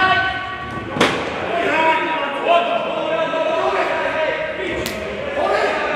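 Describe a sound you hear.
A ball is kicked hard in a large echoing hall.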